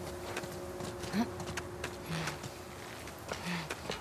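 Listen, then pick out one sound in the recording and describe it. A young woman grunts while climbing a rope.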